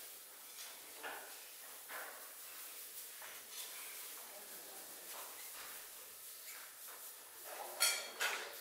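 Gloved hands rustle and crinkle as they roll crumbly pastry filling.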